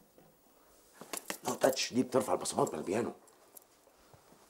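A man talks loudly with animation.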